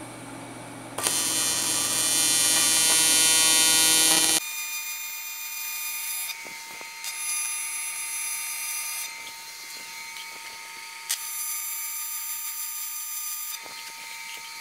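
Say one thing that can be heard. A welding arc hisses and buzzes steadily in short bursts.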